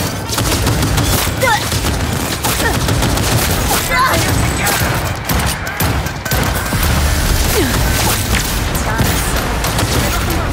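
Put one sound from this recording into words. Pistol shots crack in rapid bursts.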